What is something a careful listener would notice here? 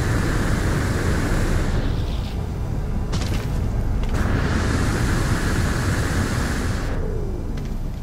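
A jetpack roars with a hissing rush of thrust.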